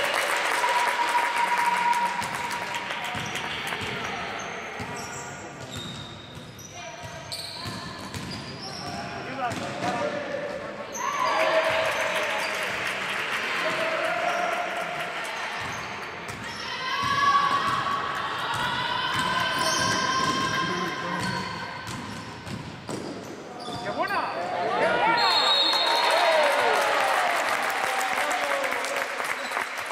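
Basketball shoes squeak sharply on a hard floor in a large echoing hall.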